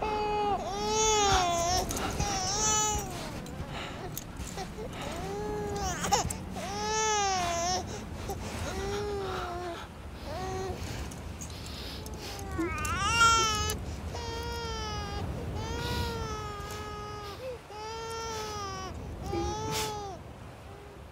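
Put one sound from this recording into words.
A newborn baby cries and wails loudly, close by.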